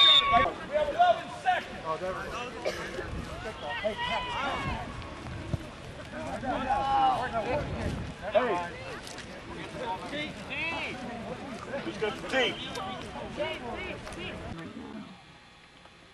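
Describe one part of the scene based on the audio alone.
A man talks and calls out nearby, outdoors.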